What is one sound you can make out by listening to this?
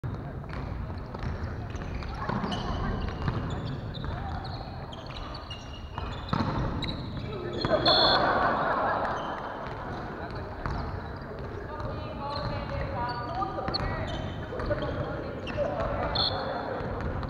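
Young men and women call out and shout across a large echoing hall.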